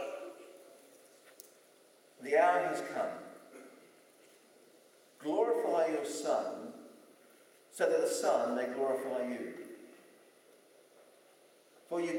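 An elderly man reads out slowly through a microphone in a hall with some echo.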